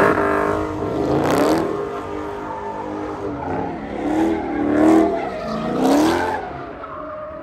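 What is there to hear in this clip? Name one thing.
A car engine revs hard and wails up and down nearby.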